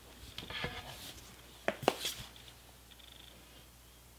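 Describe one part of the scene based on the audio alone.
A hard object is handled with a few soft knocks.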